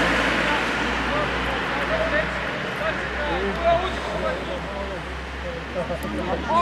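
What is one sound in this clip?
Young players shout to each other across an open field, far off.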